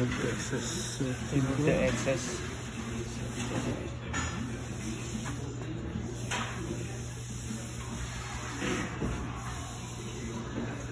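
A metal frame knocks and scrapes as it is handled.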